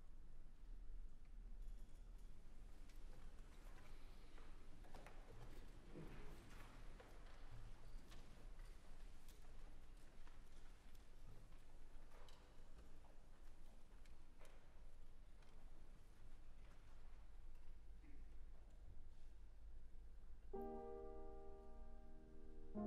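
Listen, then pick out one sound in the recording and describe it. An orchestra plays very softly in a large hall.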